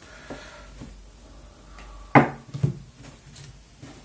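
Cards are laid down on a table with a light slap.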